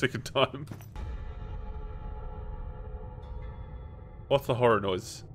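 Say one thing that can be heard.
A short musical chime plays as a key is picked up.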